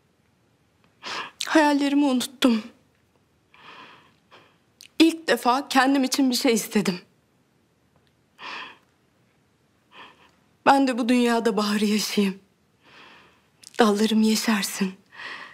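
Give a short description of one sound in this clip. A woman speaks emotionally nearby, pausing between phrases.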